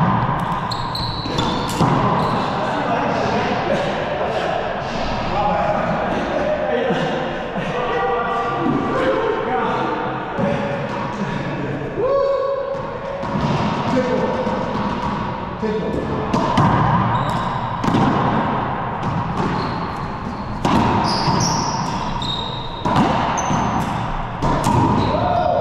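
A racquetball smacks off racquets and walls in an echoing enclosed court.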